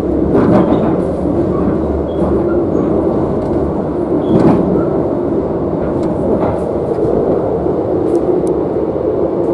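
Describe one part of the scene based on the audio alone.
Train wheels clatter and click over the track joints.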